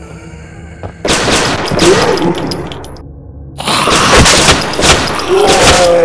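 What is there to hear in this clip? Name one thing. A man shouts loudly and angrily nearby.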